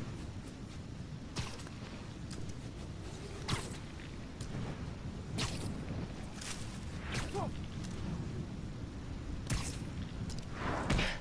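Wind rushes steadily past at high speed.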